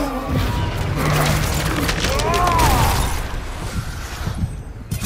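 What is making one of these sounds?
A magical blast crackles and roars.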